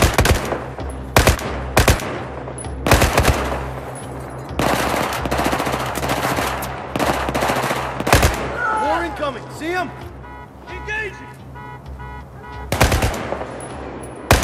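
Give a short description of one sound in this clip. Rifle shots crack loudly in short bursts.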